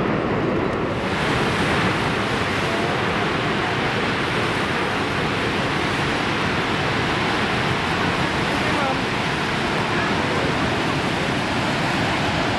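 Rapids rush and churn loudly close by.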